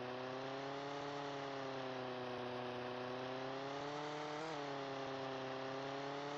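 A small model plane's engine buzzes steadily, rising and falling slightly in pitch.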